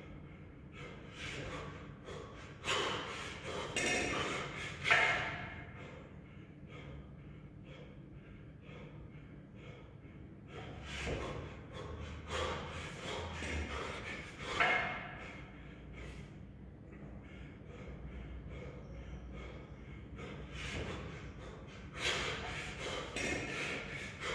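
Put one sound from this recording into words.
A man breathes hard and exhales sharply with effort.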